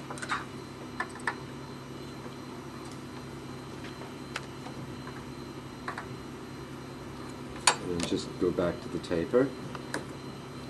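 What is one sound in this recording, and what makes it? Small tools tap on a wooden table.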